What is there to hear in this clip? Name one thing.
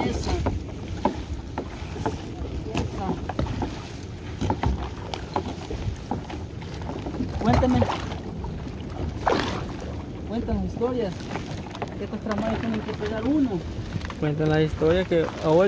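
Water drips and splashes from a net being hauled in.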